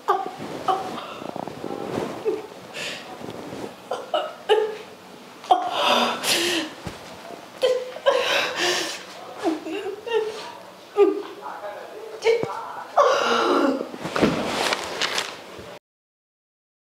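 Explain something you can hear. A young woman speaks and wails with emotion close by.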